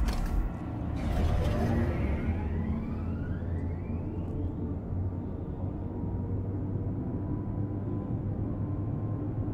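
A lift hums steadily as it moves.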